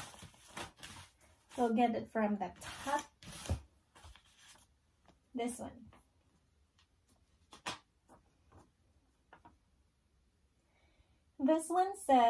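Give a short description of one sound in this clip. Paper rustles as cards are shuffled and handled.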